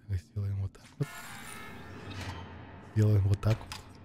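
A heavy metal door slides open with a mechanical whir.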